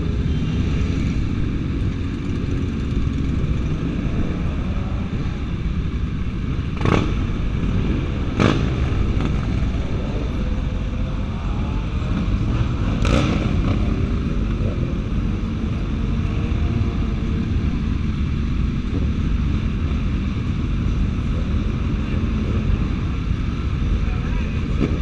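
Motorcycle engines rumble and idle close by.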